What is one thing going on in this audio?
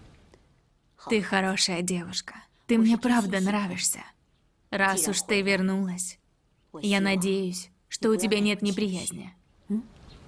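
A young woman speaks calmly and softly nearby, in short phrases with pauses.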